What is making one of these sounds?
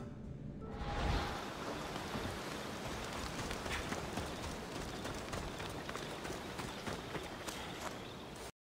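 Footsteps run over dirt and dry leaves.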